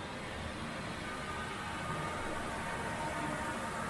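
A young man laughs softly.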